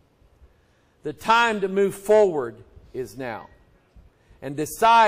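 A middle-aged man preaches with animation into a microphone.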